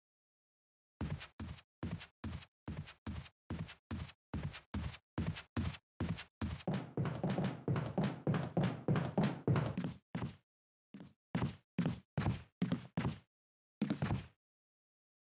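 Footsteps thud steadily on wooden stairs.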